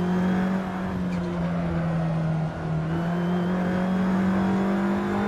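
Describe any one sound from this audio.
A racing car engine drones loudly and steadily, briefly dipping as it shifts gear.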